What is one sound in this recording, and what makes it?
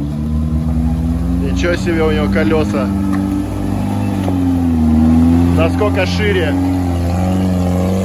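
Tyres churn and squelch through thick mud.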